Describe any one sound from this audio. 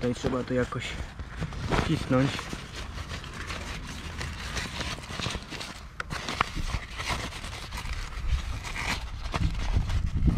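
Fabric rustles and rubs against plastic.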